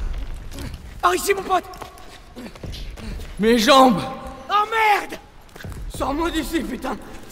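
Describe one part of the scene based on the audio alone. A young man groans and speaks in pain, close by.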